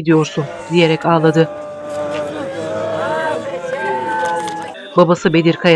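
Women wail and cry loudly in grief.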